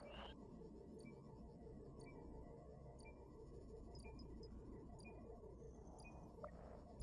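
A short electronic beep sounds once a second.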